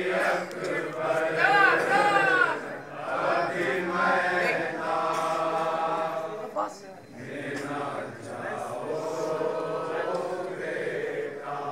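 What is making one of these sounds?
Men beat their chests with their hands in a steady rhythm.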